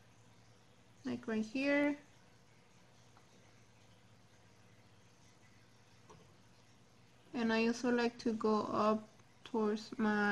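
A young woman talks calmly and close to the microphone.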